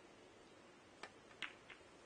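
A cue tip strikes a ball with a sharp tap.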